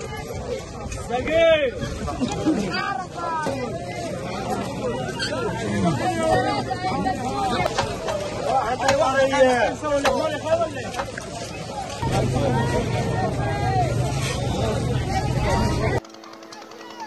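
A crowd chatters and calls out nearby outdoors.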